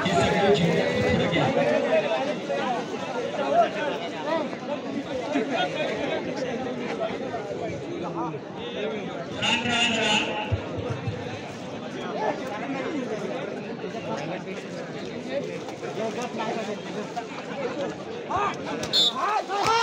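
A large outdoor crowd of men chatters and shouts.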